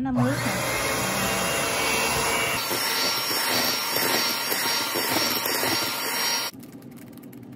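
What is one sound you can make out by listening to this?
An electric hand mixer whirs loudly as its beaters whip batter.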